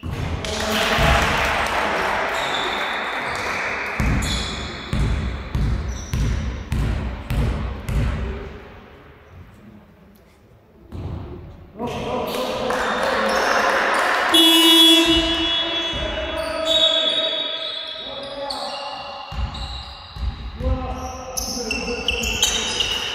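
Young girls shout and call out to each other.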